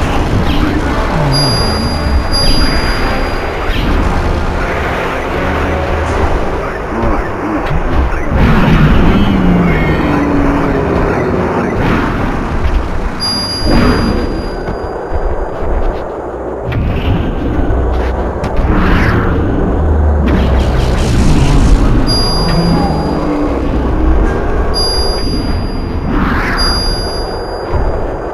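A crowd of people chatters in a busy, echoing room.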